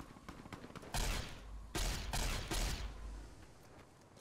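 A gun fires several loud shots.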